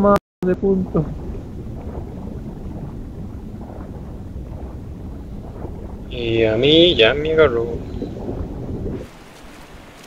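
Wind rushes loudly past a falling body.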